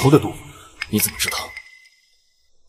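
A man speaks tensely into a phone.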